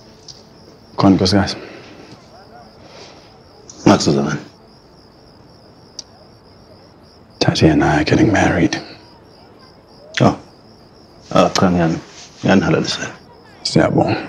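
A man asks a question in a calm voice, close by.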